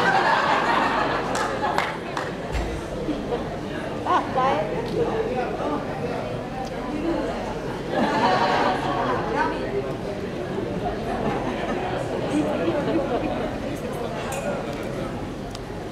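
A man speaks calmly into a microphone, heard through loudspeakers in a large room.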